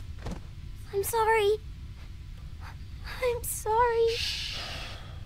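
A young girl sobs and cries out in a trembling voice, close by.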